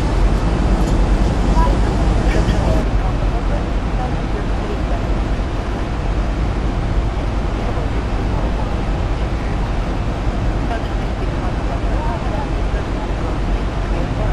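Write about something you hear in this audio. A jet engine roars with a steady, low drone.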